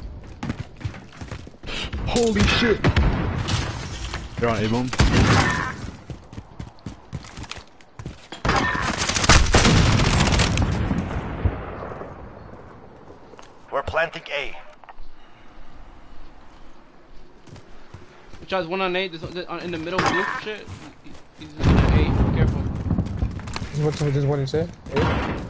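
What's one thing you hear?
Gunshots crack and boom in bursts.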